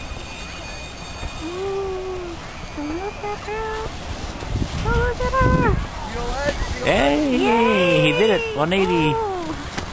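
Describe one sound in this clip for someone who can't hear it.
A snowboard scrapes over snow.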